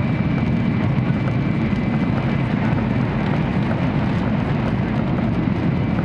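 A passing train whooshes by in a sudden rush of air.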